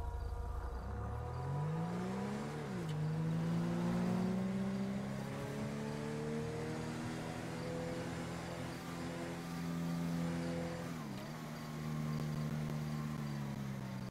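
A car engine revs up and shifts gears.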